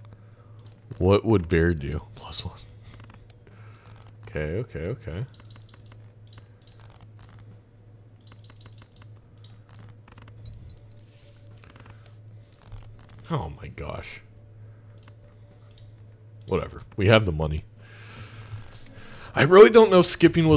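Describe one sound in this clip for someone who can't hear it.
A young man speaks with animation, close to a microphone, in short bursts.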